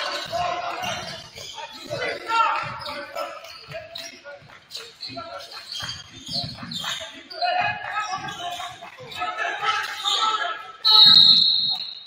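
Sneakers squeak on a polished court.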